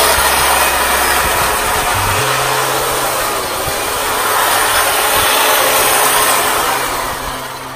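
An electric hedge trimmer buzzes steadily while cutting through leaves.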